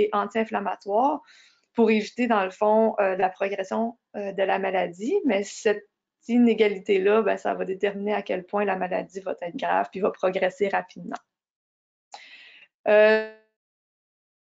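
A young woman speaks calmly through a microphone, as on an online call.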